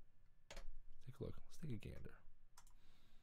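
A young man speaks briefly and calmly into a close microphone.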